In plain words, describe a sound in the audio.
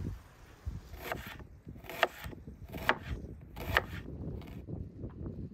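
A knife slices through an onion on a wooden board with crisp, regular chops.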